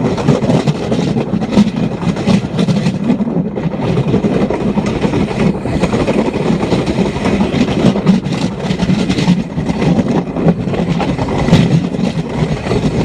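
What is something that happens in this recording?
A small motor vehicle rattles and rumbles steadily along railway tracks.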